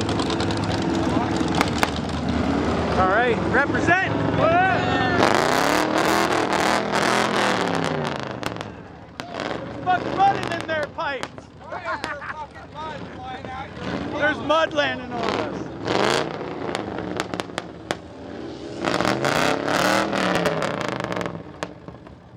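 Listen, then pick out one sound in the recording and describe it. A truck engine idles and revs loudly nearby.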